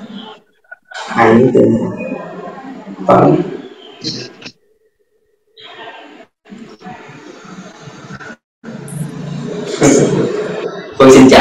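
A young man speaks cheerfully through an online call.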